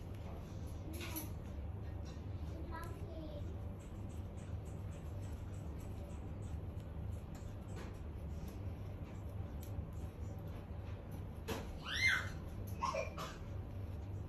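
A parrot makes soft chirps and squeaks close by.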